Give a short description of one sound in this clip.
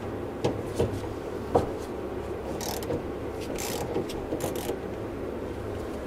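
A ratchet wrench clicks as a fitting is turned.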